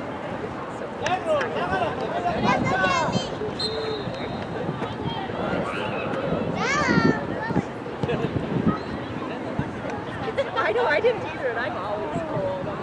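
Players and spectators shout and call out across an open field outdoors.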